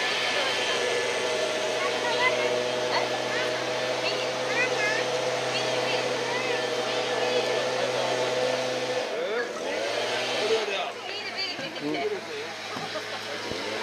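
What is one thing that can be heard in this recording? A young child chatters and calls out in a high voice nearby.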